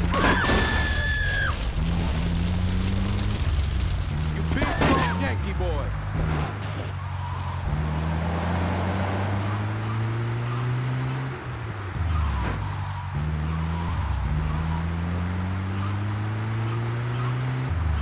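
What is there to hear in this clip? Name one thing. A truck engine revs and shifts gears as it drives along.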